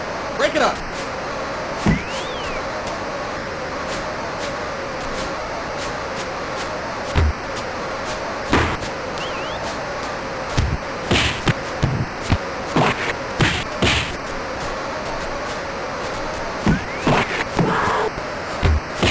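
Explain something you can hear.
Punches thud against a boxer in quick bursts.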